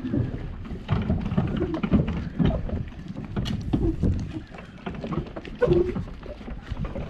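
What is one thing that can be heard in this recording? Footsteps thud on a wooden pier.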